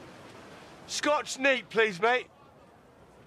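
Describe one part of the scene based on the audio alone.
A young man speaks loudly and clearly, close by.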